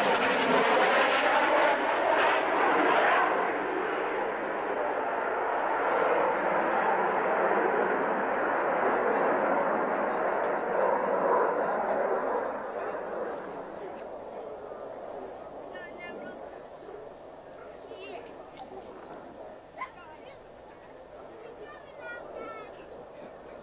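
A jet aircraft roars past and fades into the distance.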